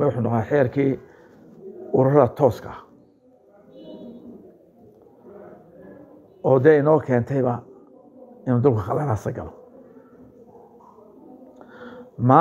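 An elderly man speaks calmly and firmly in short bursts, close to a microphone.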